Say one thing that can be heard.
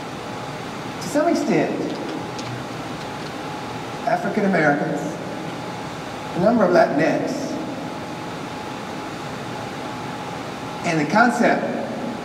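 An elderly man speaks calmly through a microphone in short phrases, with pauses.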